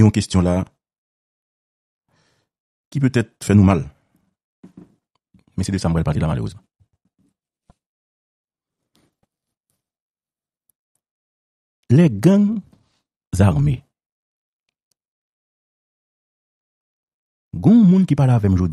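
A man speaks in bursts over a phone line, with long pauses.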